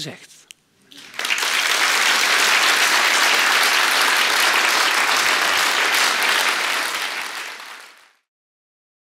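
An audience applauds in a large hall and the applause fades.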